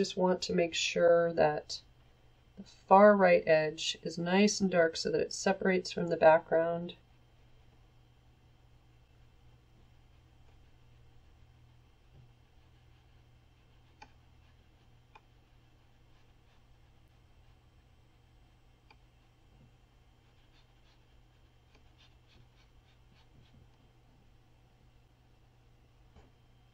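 A paintbrush softly strokes across paper.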